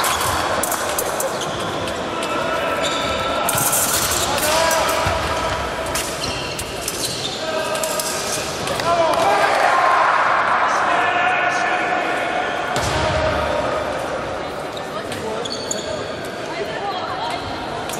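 Shoes squeak and thud on a wooden floor in a large echoing hall.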